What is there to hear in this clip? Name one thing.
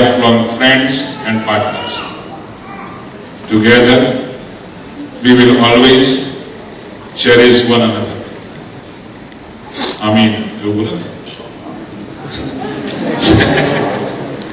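A man speaks loudly close by, in bursts.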